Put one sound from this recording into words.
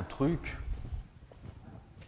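Metal stools clatter as a man carries them.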